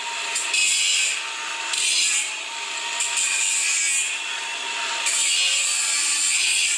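A cordless power tool whirs in short bursts.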